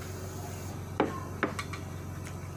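A mug knocks down onto a table.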